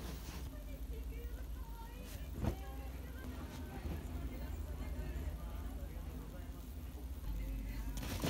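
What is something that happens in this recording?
Fabric rustles softly as clothes are laid down.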